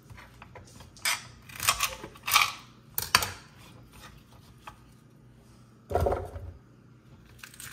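Celery stalks knock and clatter against a cutting board.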